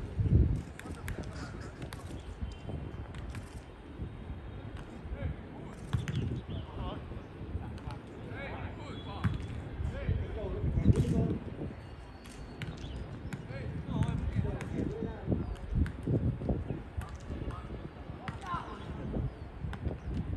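Footballs thud as players kick them back and forth.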